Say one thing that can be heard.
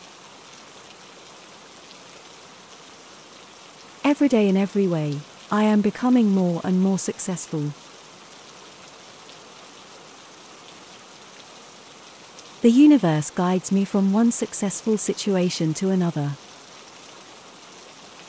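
Steady rain falls.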